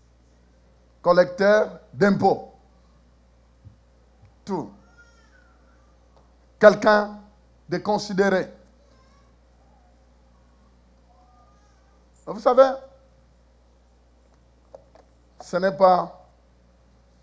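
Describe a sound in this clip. A man preaches with animation through a microphone, with long pauses.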